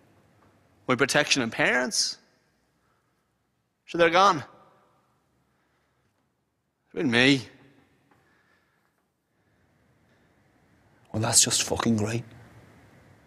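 A young man recites poetry in short, forceful bursts with long pauses.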